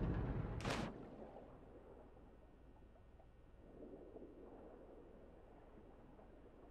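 Bubbles gurgle, muffled underwater.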